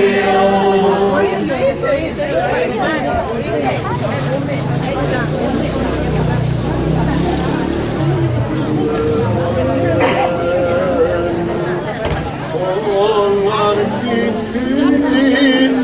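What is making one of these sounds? Men and women murmur and chat quietly nearby.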